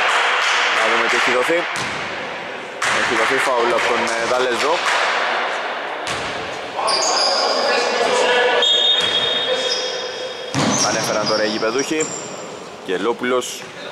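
Basketball players shout to each other in a large echoing gym.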